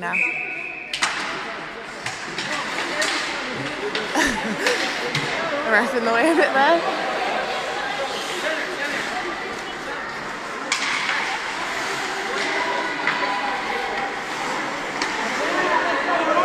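Hockey sticks clack against a puck in a large echoing rink.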